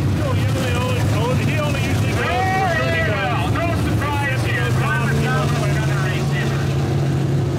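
Race car engines roar loudly as the cars speed past.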